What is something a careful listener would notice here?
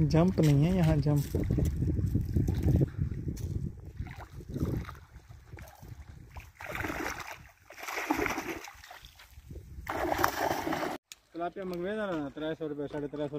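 Water splashes as a net is hauled through a pond.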